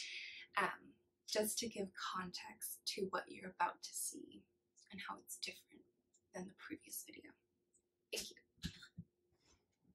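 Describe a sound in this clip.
A young woman talks calmly and warmly, close to a microphone.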